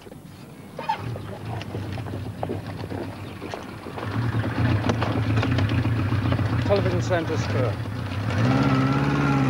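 A motorcycle engine idles.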